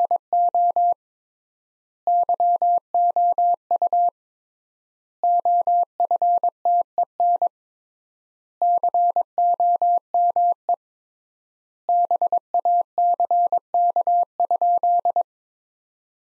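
Morse code beeps in steady short and long tones, in bursts with pauses between.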